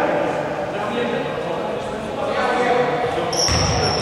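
Men call out to each other across the hall.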